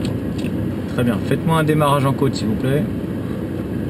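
A man speaks calmly nearby inside a car.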